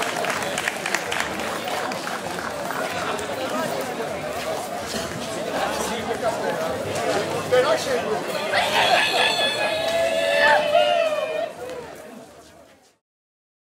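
A group of men sing together outdoors.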